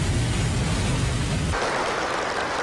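Train wheels rumble and clatter along the rails.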